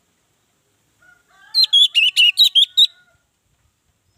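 An orange-headed thrush sings a quick burst of loud whistled phrases.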